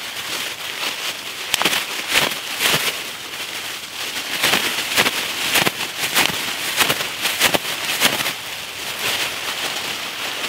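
Dry leaves crunch as someone shifts and stands.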